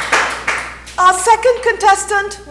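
A woman speaks cheerfully and clearly, close by.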